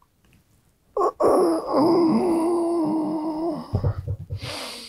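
A man yawns long and loudly close by.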